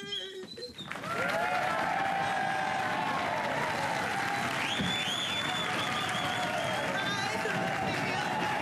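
A woman wails and sobs loudly.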